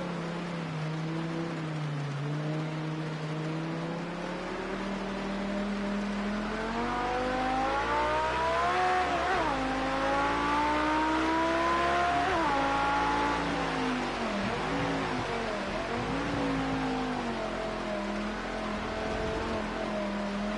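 A racing car engine roars, rising and falling in pitch as it revs up and shifts gears.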